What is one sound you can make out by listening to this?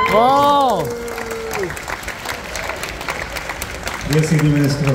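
An audience claps nearby.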